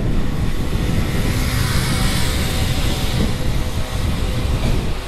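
A motor scooter drives past on the street.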